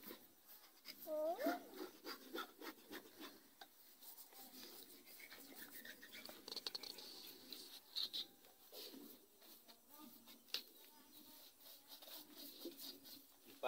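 A knife scrapes and cuts at skin and flesh.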